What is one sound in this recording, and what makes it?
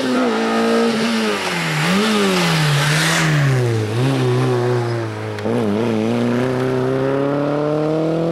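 A rally car engine revs loudly up and down as it passes close by and shifts gears.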